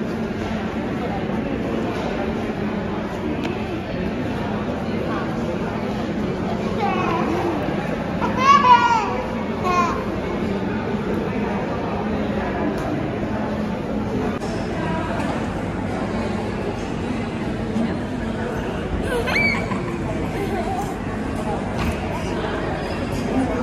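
A crowd murmurs in a large echoing hall.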